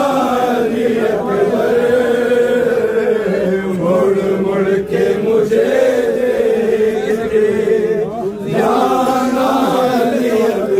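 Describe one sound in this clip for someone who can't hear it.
Men beat their chests in a steady rhythm.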